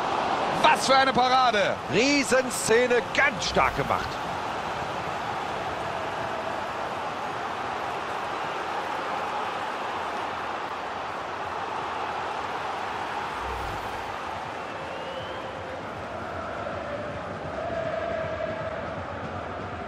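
A stadium crowd murmurs and roars steadily in the background.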